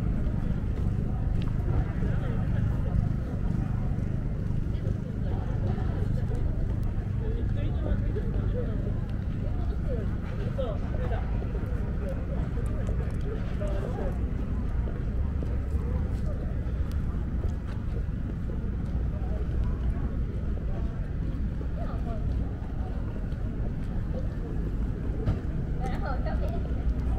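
Footsteps tap on paved ground nearby.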